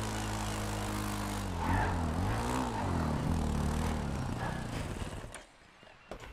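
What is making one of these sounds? A quad bike engine revs and drones.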